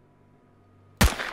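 A gun fires once with a loud bang.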